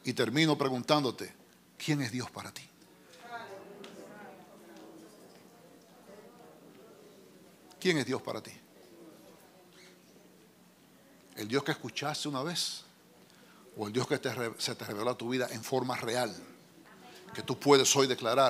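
A middle-aged man speaks with animation into a microphone in a large room.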